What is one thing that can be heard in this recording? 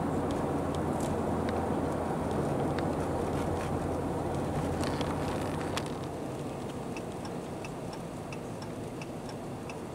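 Tyres roll and hiss over a snowy road.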